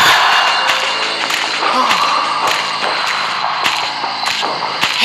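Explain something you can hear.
Footsteps tread at an even pace.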